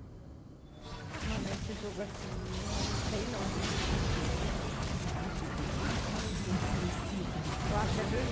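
Game combat effects clash and burst loudly.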